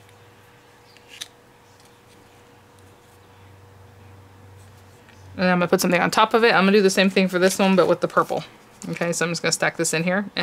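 Card paper rustles and scrapes softly as hands press and move it.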